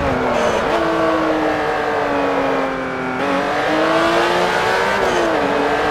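Tyres squeal through tight bends.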